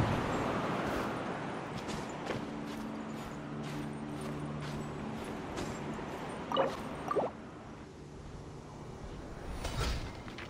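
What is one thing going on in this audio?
Light footsteps scrabble on stone while climbing.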